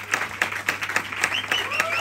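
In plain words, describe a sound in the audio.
A man calls out cheerfully.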